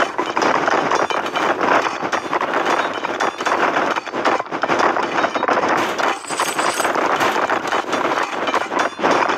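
Swords clash and clang in a busy battle.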